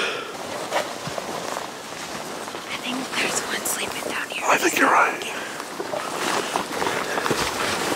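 Footsteps crunch on leaves and twigs.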